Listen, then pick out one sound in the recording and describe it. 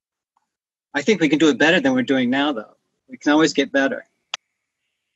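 A middle-aged man speaks with animation over an online call.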